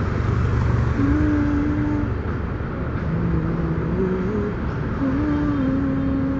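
A middle-aged man sings in long, slow held notes close by.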